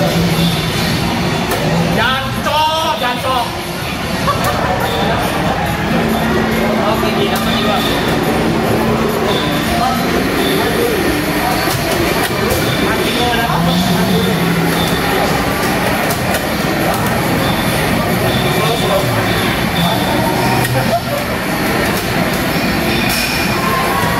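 Loud arcade racing game music and engine sounds play from loudspeakers.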